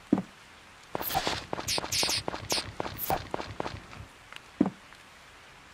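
Quick light footsteps patter on soil.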